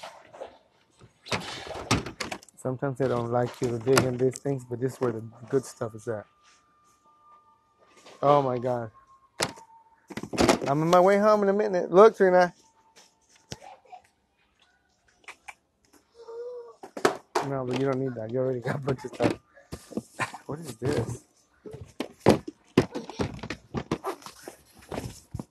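Plastic toys knock and rattle as they are handled.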